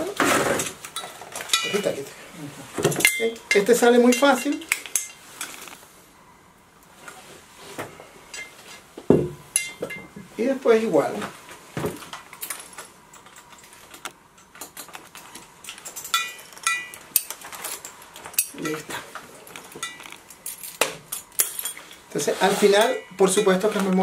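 Metal gear clinks and knocks against a scuba tank.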